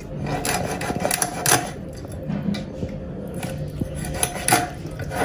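A knife scrapes scales off a fish.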